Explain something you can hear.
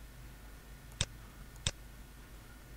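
A computer mouse clicks sharply.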